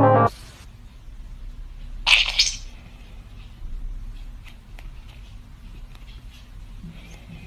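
A kitten's paws tap lightly on a phone.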